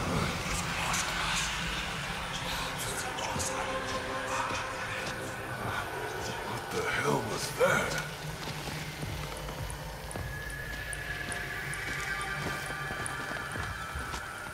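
Footsteps crunch through leafy undergrowth.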